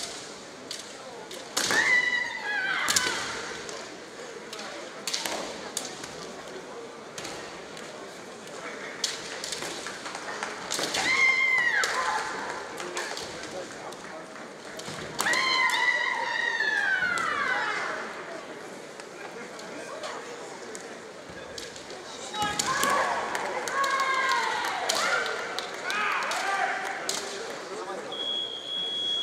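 Bamboo swords clack sharply against each other and against armour.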